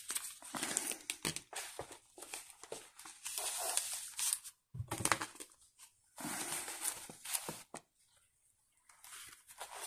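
Paper pages rustle and turn.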